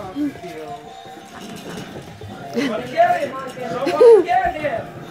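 Puppies whine and yelp in high, bending cries.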